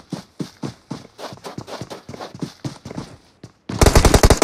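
Footsteps crunch quickly over dry ground.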